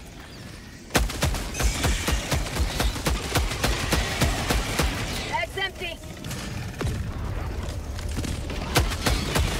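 A rifle fires rapid bursts close by.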